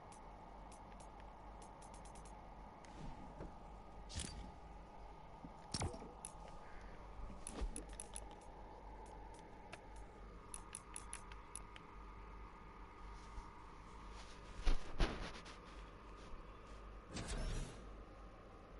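Short game menu clicks and chimes sound now and then.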